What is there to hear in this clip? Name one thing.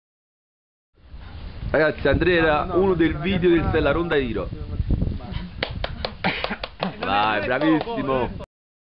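Several men talk and laugh loudly nearby.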